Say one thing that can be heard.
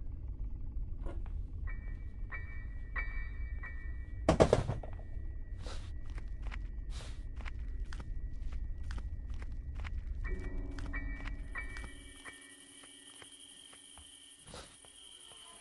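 Footsteps thud on a hard floor at a steady pace.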